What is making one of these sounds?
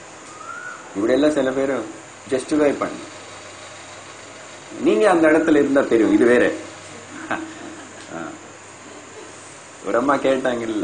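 An elderly man speaks calmly and with pauses into a close microphone.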